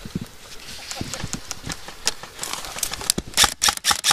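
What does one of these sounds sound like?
An airsoft gun fires rapid shots close by.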